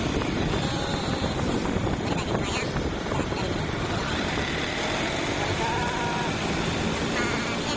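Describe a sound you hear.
A motorbike passes by with its engine buzzing.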